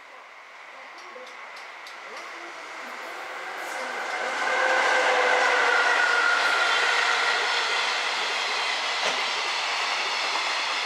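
A train rolls closer along the tracks with a rising rumble.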